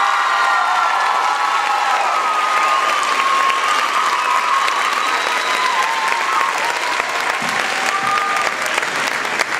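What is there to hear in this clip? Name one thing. A large choir of young voices sings together in an echoing hall.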